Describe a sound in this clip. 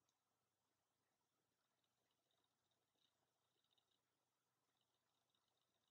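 A makeup sponge softly pats against skin close by.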